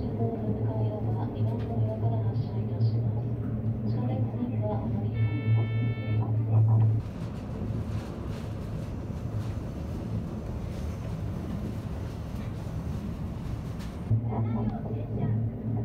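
A train rumbles and hums steadily along the tracks.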